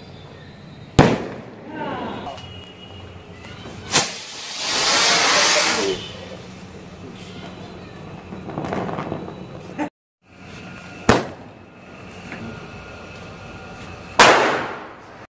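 Fireworks bang loudly outdoors.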